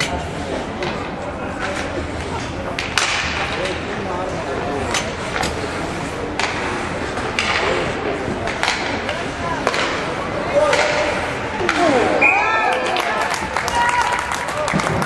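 Skates scrape and hiss on ice in a large echoing rink.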